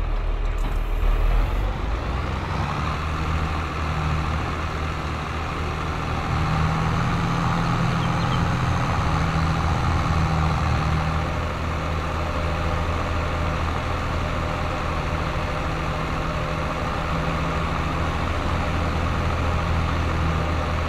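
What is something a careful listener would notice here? A tractor engine rumbles steadily as the tractor drives along.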